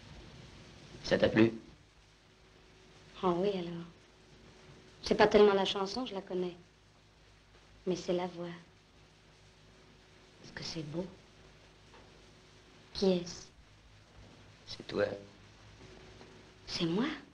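A woman speaks softly in short phrases, with long pauses.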